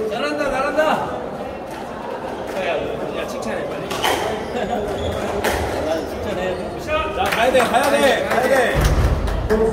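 A squash ball is struck hard with a racket and smacks against the walls of an echoing court.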